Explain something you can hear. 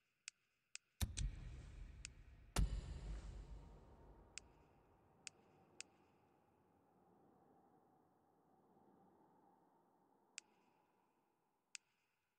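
A deep whoosh and rumble sweeps in as a new menu opens, then slowly fades.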